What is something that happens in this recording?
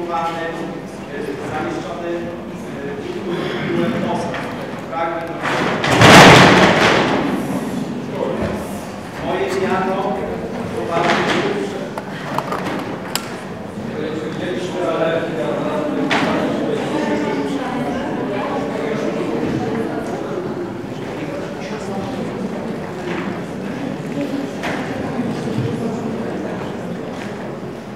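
A man speaks steadily at a lectern through a microphone and loudspeakers in a large echoing hall.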